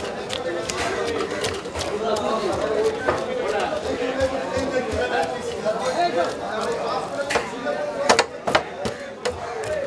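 A heavy knife chops through fish with sharp, repeated thuds.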